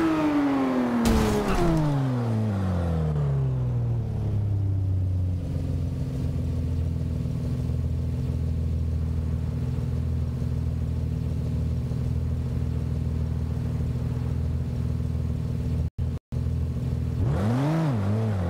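A car engine winds down from high revs and settles into a low idle.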